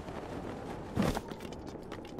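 A figure lands on the ground with a thud.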